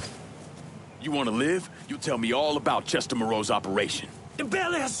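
A man shouts and groans nearby.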